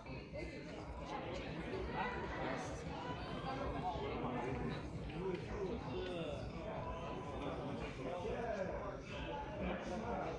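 Many people chatter and talk at once in an indoor crowd.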